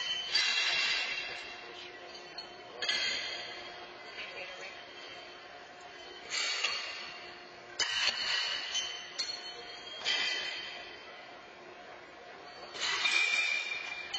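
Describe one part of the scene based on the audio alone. Thrown horseshoes clang against metal stakes, ringing in a large echoing hall.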